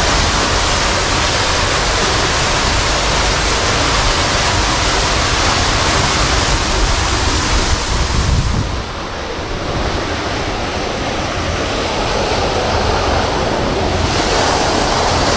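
Water splashes and trickles steadily from a fountain nearby.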